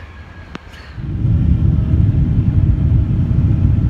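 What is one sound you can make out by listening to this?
A plane's engines rumble steadily in the cabin.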